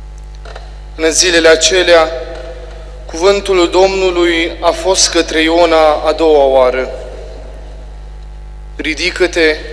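A young man reads aloud through a microphone in an echoing hall.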